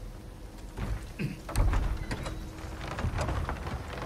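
A wooden gate creaks open.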